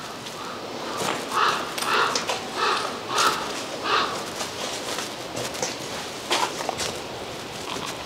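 Footsteps crunch over loose debris and rubble.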